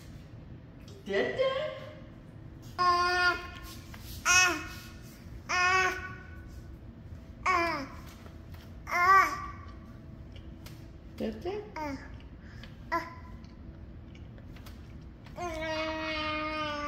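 A baby squeals and babbles loudly nearby.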